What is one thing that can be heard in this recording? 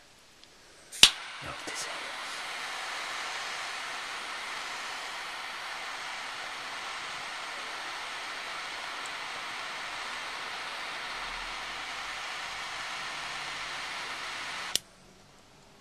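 A torch lighter's flame hisses steadily.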